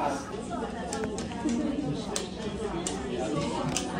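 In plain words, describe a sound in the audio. A stiff menu page flips over.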